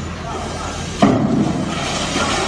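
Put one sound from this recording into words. A metal scaffold plank clangs as it gives way.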